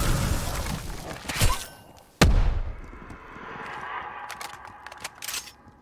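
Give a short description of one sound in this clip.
Flames crackle and burn close by.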